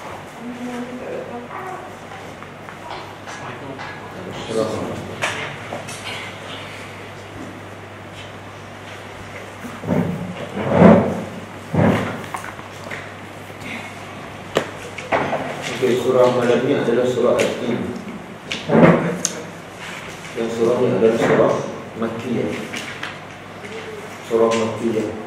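A middle-aged man speaks calmly into a close microphone, with pauses.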